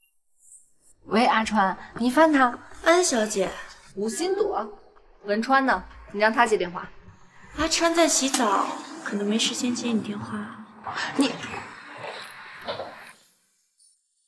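A young woman speaks tensely on a phone, close by.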